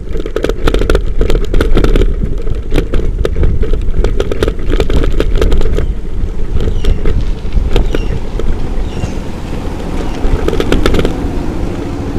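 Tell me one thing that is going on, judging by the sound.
Bicycle tyres crunch and rattle over a bumpy dirt road.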